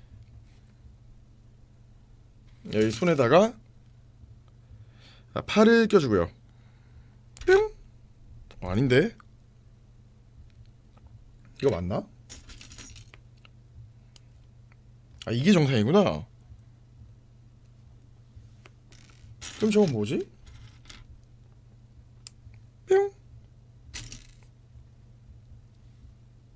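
Plastic toy bricks click and rattle as they are sorted.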